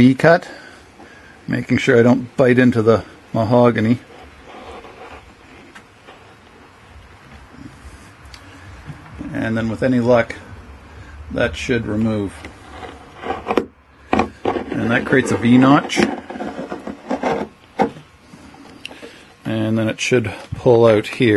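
A metal blade scrapes along a wooden seam.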